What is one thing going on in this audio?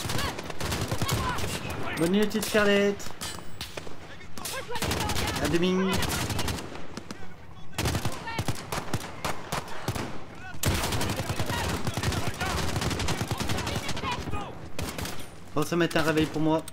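Gunfire crackles and bangs in short bursts.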